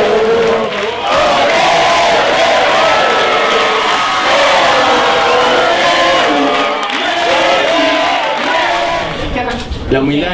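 A large crowd cheers and chants.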